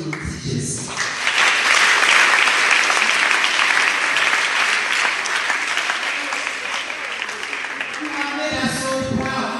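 A crowd cheers and applauds loudly.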